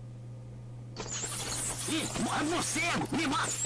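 A teenage boy talks with animation over an online call.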